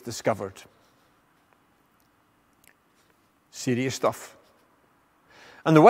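An elderly man speaks calmly into a clip-on microphone, with pauses.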